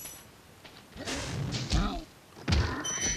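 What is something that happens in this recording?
A small dragon breathes a roaring burst of flame.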